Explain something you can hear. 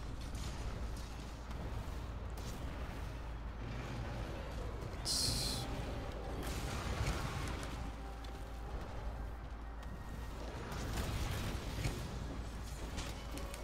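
Video game blades slash in combat.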